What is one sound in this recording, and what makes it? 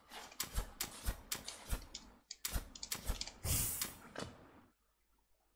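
Quick light footsteps tap in a game.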